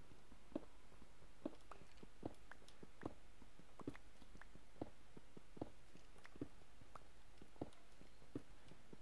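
Footsteps thud steadily on stone, about one step each second.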